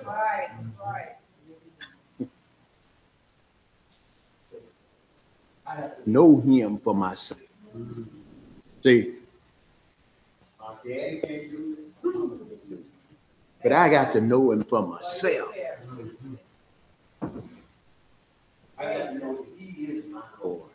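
A middle-aged man preaches with animation through a microphone in an echoing hall, pausing between phrases.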